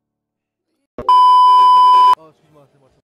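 A steady high test tone beeps briefly.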